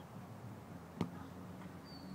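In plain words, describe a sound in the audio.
A ball is kicked hard with a single thud.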